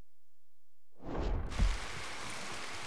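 Thunder rumbles and booms.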